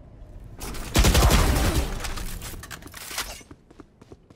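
A rifle fires a loud, rapid burst of shots.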